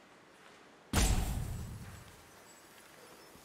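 A deep booming impact hits and rumbles away.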